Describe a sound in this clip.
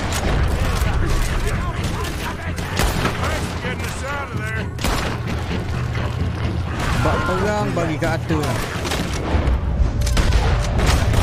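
Gunshots crack out repeatedly, close by.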